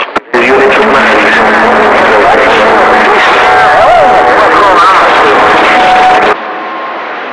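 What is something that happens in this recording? Warbling whistles sweep up and down from a radio loudspeaker.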